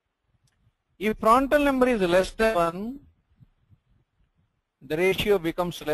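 A man lectures calmly, close to a microphone.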